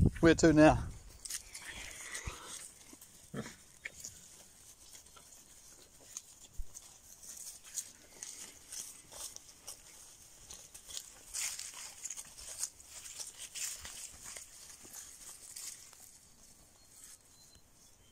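Pigs rustle through grass and dry stalks as they root about.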